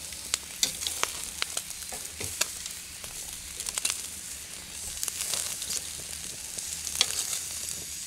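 Metal tongs click against a grill.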